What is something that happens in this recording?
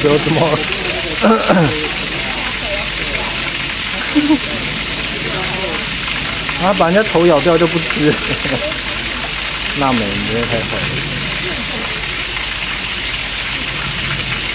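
Water splashes and rushes steadily over rocks.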